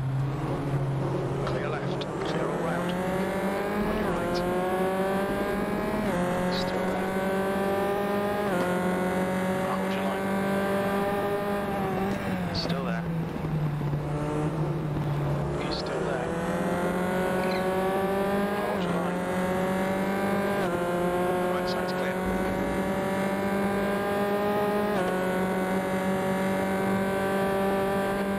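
A racing car engine revs high, climbing through the gears with sharp shifts.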